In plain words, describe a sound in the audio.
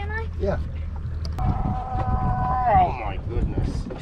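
A young girl calls out excitedly close by.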